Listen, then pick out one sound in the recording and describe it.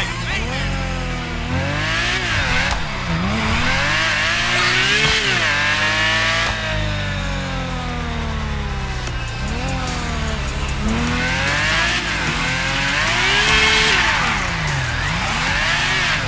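A sports car engine revs up and down as the car accelerates and shifts gears.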